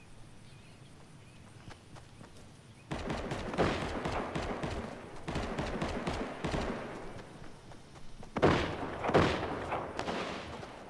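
Footsteps patter quickly on grass as a character runs.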